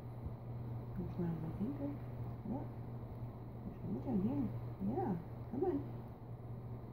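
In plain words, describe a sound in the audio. A woman speaks softly and sweetly to a dog nearby.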